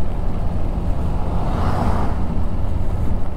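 A car drives past close by and fades away.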